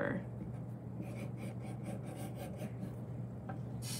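A marker squeaks across paper in short strokes.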